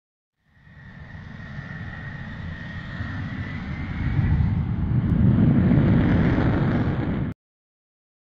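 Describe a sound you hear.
A jet engine roars, growing louder.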